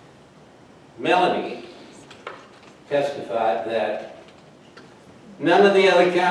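An elderly man speaks deliberately into a microphone, with pauses.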